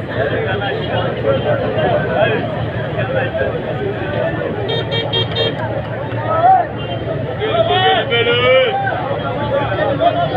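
A large crowd of men and women chatters and shouts loudly outdoors.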